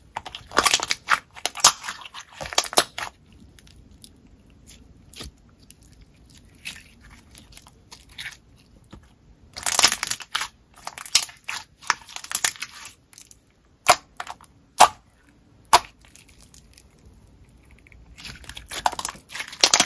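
Small bubbles in slime pop with sharp clicks.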